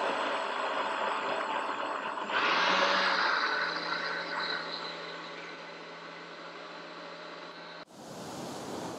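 A blender whirs, mixing a drink.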